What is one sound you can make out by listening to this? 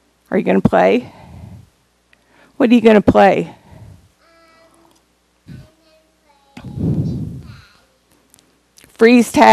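A woman reads a story aloud with expression through a microphone in an echoing room.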